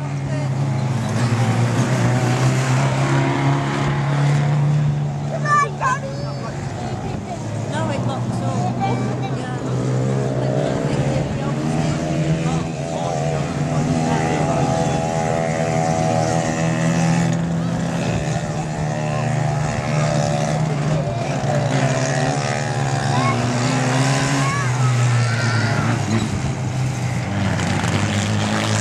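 Small stock car engines rev hard as cars race around a track.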